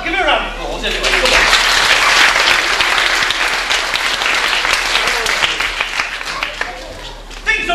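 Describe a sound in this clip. An audience of children claps and cheers.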